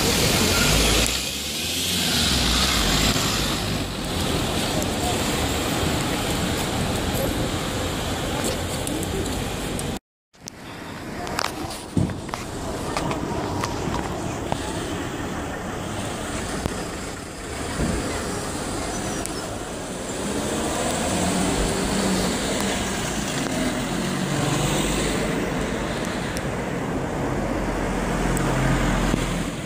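Traffic hums steadily along the street.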